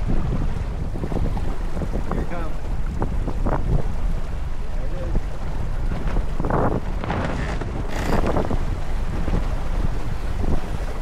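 A man and women talk and laugh nearby, partly masked by wind.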